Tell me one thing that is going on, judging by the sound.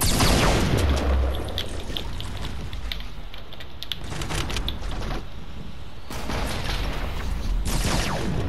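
Wooden walls snap into place with quick clattering knocks.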